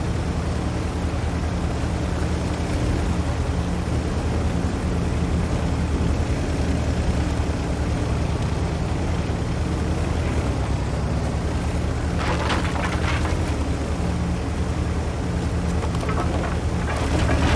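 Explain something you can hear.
A heavy tank engine rumbles steadily as the tank drives along.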